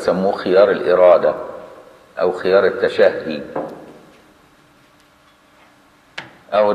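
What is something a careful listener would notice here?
An older man speaks calmly into a close microphone, in a slightly echoing room.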